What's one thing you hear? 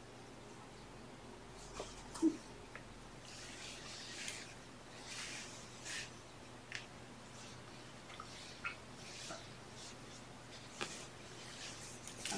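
Hands rustle and brush softly against a kitten's fur close by.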